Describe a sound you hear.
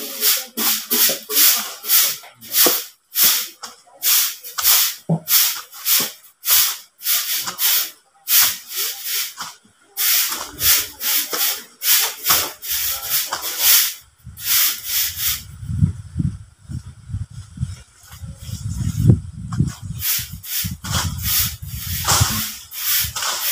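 A hoe scrapes and chops into the soil in a quick steady rhythm.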